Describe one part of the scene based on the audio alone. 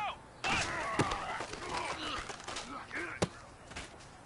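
Football players collide with heavy thuds.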